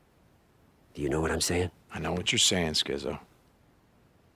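A man answers in a low, rough voice.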